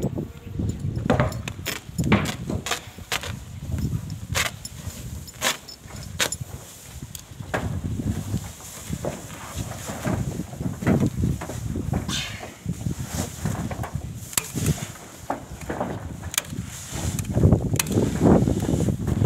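Foil insulation crinkles and rustles as it is unrolled and handled.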